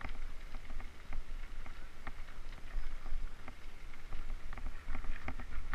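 Wind rumbles low and steady, as on an open hillside.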